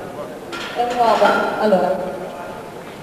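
A man calls out loudly in a large echoing hall.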